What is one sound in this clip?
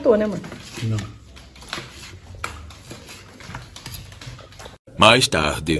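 A knife scrapes and cuts through cooked meat on a wooden board.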